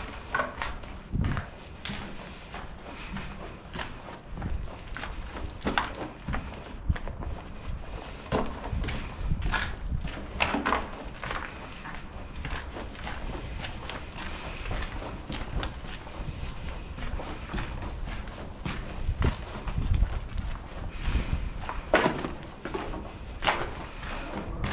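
Footsteps crunch over debris and grit on a hard floor.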